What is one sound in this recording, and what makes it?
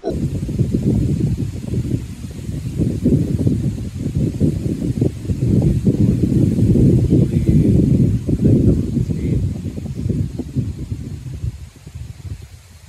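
Wind blows through tree leaves outdoors, gusting and rumbling.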